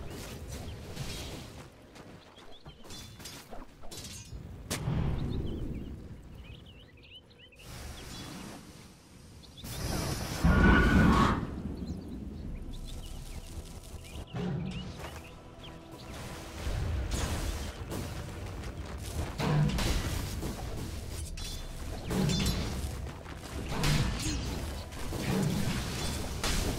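Game characters clash with blows and impacts.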